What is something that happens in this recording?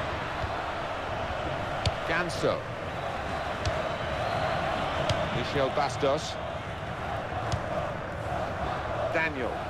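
A large crowd roars and chants steadily.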